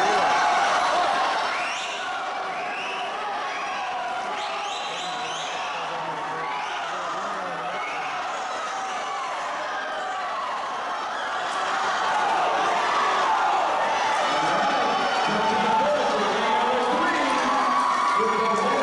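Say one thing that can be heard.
A crowd chatters and echoes in a large indoor hall.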